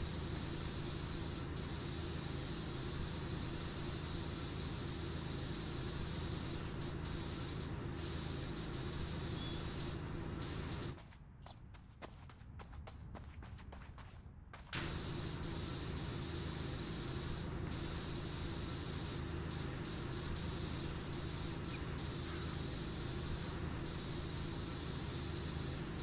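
A pressure washer sprays water with a steady, rushing hiss, pausing briefly partway through.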